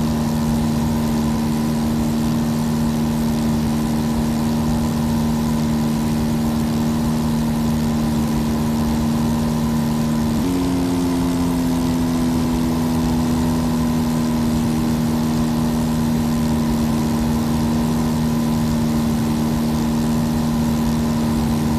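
A small propeller plane's engine drones steadily, shifting slightly in pitch partway through.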